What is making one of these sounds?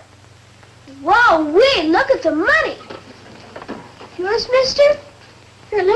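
A young boy speaks in a pleading voice.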